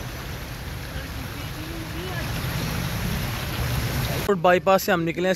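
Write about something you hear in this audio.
Car tyres splash through deep floodwater.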